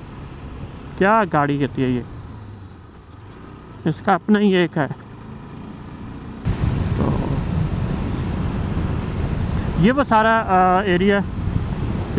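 A motorcycle engine revs up and shifts through the gears.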